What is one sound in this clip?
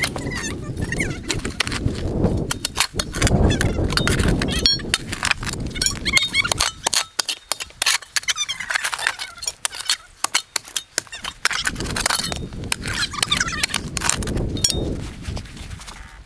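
A spade digs and scrapes into soil and stones.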